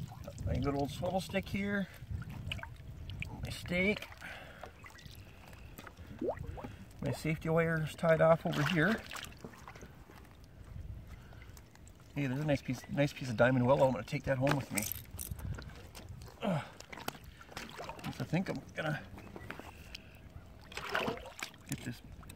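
Water splashes and sloshes around a man's legs.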